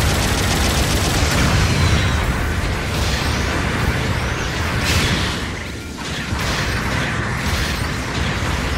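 A heavy robot's engines roar steadily.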